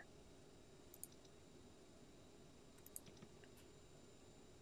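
Buttons click on a keypad.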